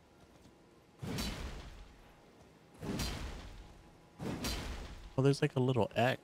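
A heavy blade swooshes through the air in repeated swings.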